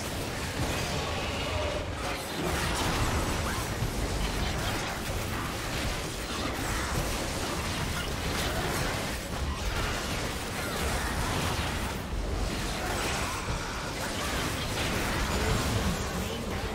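Magic blasts, hits and explosions crackle and boom in a video game battle.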